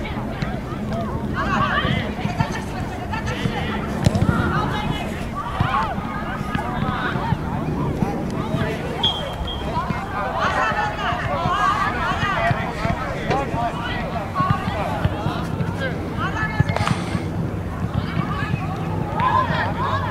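Young women shout and call to each other outdoors.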